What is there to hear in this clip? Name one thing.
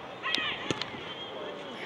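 A football thuds off a player's foot.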